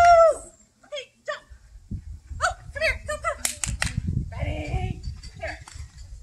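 A woman calls out to a dog in a high, excited voice nearby outdoors.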